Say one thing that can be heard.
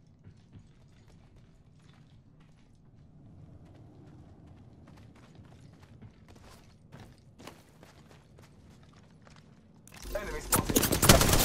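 Footsteps run quickly over hard ground and sand.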